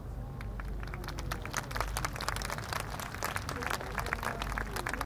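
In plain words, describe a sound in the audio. Fireworks crackle and pop rapidly in the distance.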